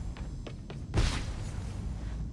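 A heavy thud sounds as a body lands on the floor.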